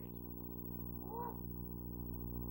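A cow moos briefly in the distance.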